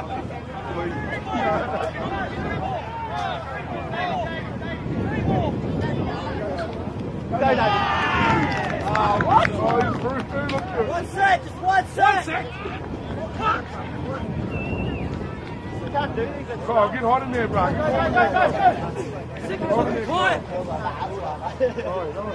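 Men call out and talk across an open field.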